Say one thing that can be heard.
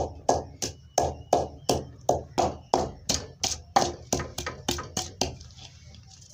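A wooden pestle pounds rhythmically in a clay mortar.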